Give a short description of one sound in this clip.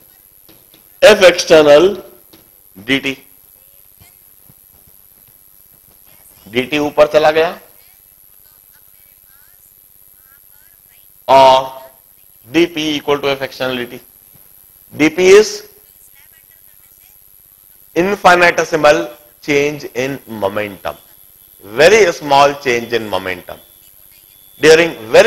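A man lectures calmly into a close microphone, in bursts with pauses.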